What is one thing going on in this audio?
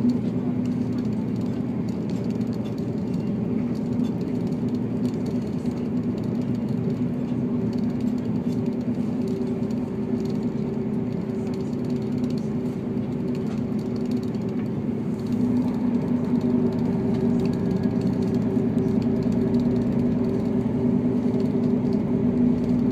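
Train wheels rumble over the rails, heard from inside the carriage.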